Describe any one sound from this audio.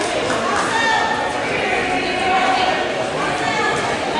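A basketball bounces on a hard wooden floor in an echoing hall.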